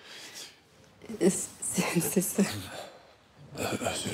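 A woman laughs softly nearby.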